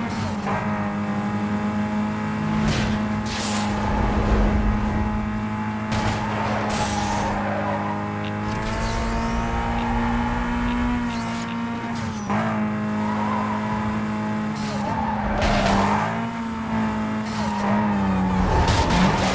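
A racing car engine roars at high revs, steady and loud.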